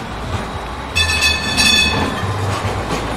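Tram wheels squeal on the rails.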